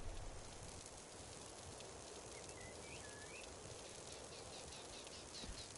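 A magic spell crackles and hums softly.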